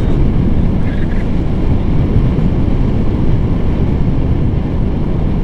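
Strong wind roars and buffets loudly against a microphone throughout.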